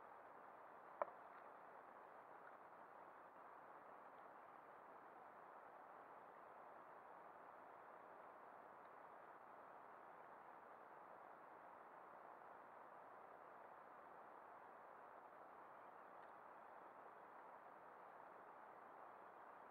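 A fishing reel clicks as it is handled.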